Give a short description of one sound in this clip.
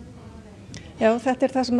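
A woman speaks clearly into a microphone close by.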